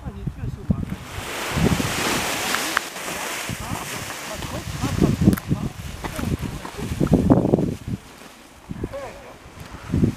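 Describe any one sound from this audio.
A paraglider wing rustles and flaps as it fills with air.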